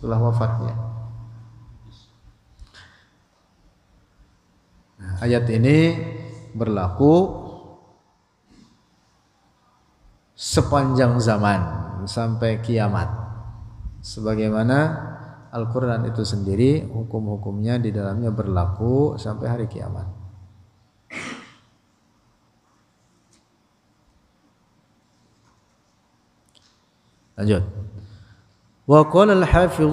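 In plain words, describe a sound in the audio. A man speaks calmly into a close microphone, in a melodic chanting voice, with pauses.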